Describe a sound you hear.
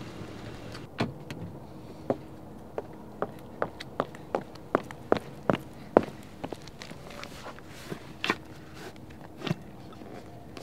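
High heels click on pavement as a woman walks closer.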